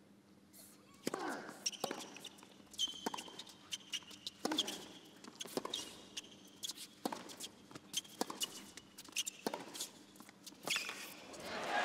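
A tennis ball is struck back and forth in a rally, with sharp thwacks.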